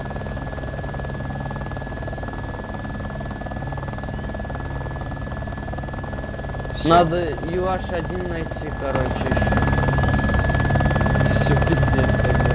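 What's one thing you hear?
Helicopter rotor blades thump steadily with a loud engine whine.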